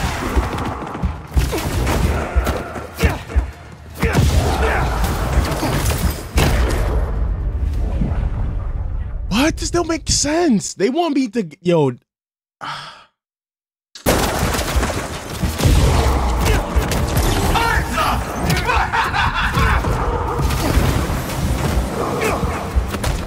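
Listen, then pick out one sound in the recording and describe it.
Video game combat sounds play, with punches, thuds and blasts.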